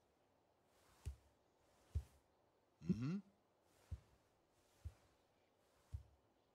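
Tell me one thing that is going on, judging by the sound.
Bare feet thud slowly on a wooden floor.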